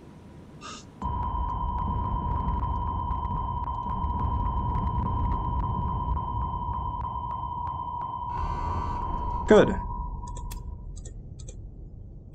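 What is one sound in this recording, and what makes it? A low underwater rumble fills the water.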